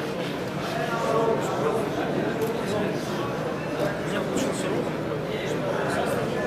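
Several men talk in low voices close by.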